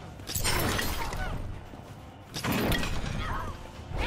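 A sharp blast of energy whooshes and bursts.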